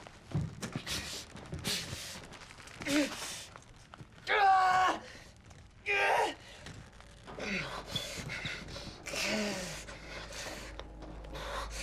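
Clothing rustles and scuffs as two men struggle.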